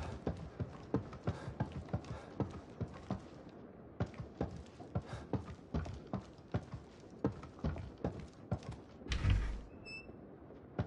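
Footsteps thud on creaky wooden floorboards at a walking pace.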